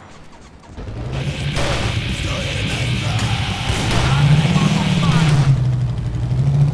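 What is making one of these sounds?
A motorcycle engine rumbles and revs up.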